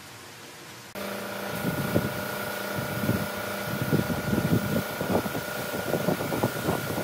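A spray gun hisses steadily.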